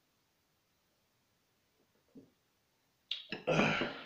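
A glass mug knocks down on a table.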